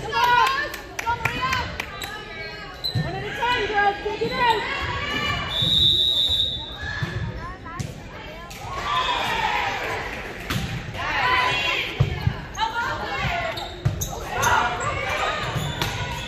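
Young women call out and cheer in a large echoing gym.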